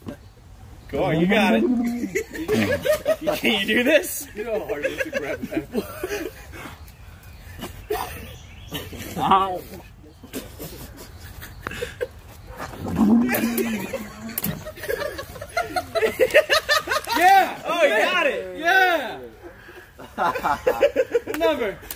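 A man talks and laughs with animation nearby.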